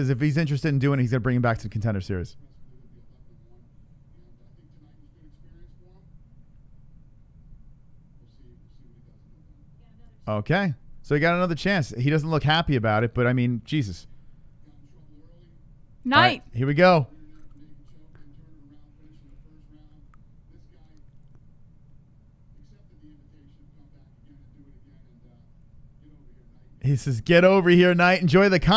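A man talks into a microphone in a casual, animated way.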